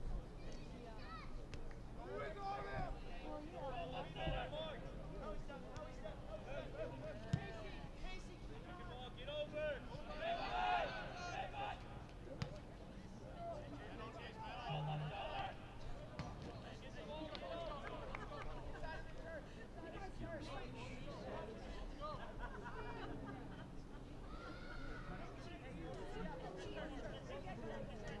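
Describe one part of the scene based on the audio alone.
Young men shout and call out across an open playing field.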